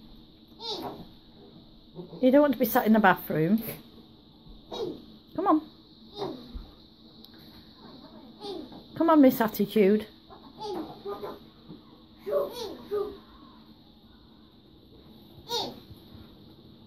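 A young girl talks and laughs excitedly close by.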